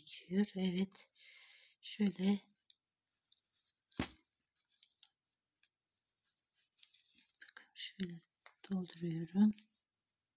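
Hands push soft stuffing into a knitted piece with a quiet rustle.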